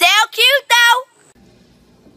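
A boy sings out in a high, excited voice close by.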